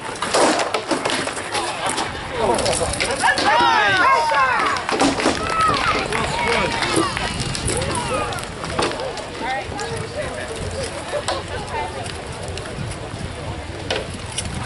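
A crowd of onlookers chatters and cheers outdoors.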